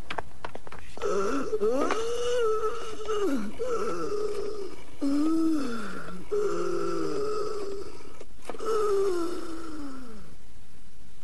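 An elderly woman moans and wails in pain, close by.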